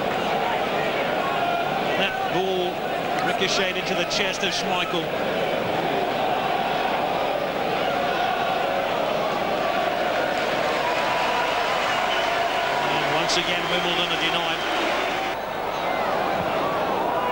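A stadium crowd roars loudly throughout.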